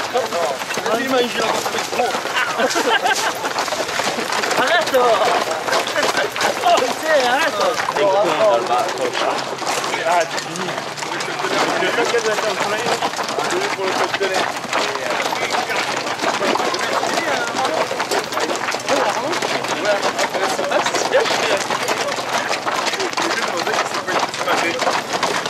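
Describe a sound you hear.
Horses' hooves clop on a dirt track.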